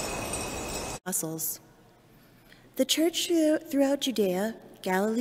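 A young woman reads aloud calmly into a microphone.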